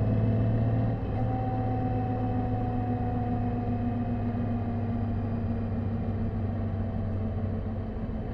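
A motorcycle engine hums steadily close by, slowly dropping in pitch.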